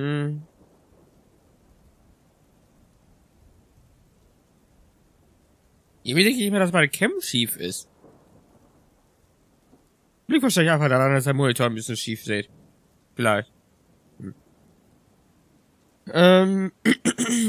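A young man talks with animation into a close microphone, in short bursts with pauses.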